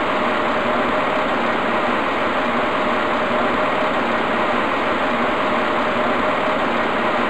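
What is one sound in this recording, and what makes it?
A tram hums steadily while standing still.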